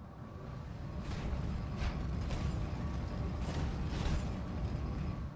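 Heavy metal footsteps of a giant walking robot thud on rocky ground.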